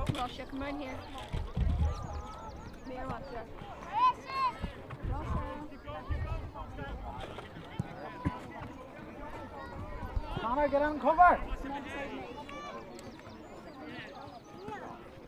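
A crowd of spectators shouts and calls out outdoors across an open field.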